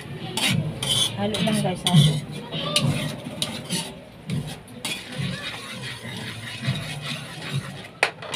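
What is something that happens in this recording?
A spatula scrapes and stirs inside a metal pan.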